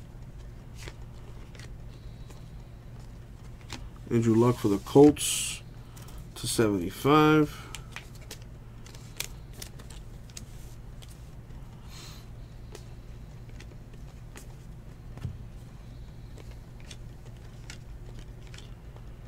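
Trading cards softly click and rustle as they are flipped by hand.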